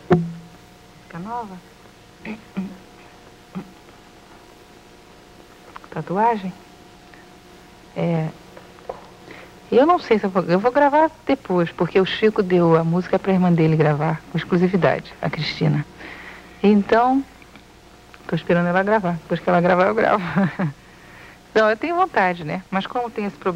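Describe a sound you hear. A young woman sings into a microphone in a soft, breathy voice.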